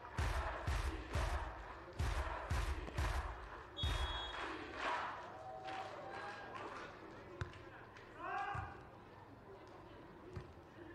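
A crowd claps and cheers in a large echoing arena.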